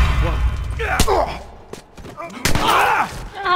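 Heavy punches thud in a scuffle.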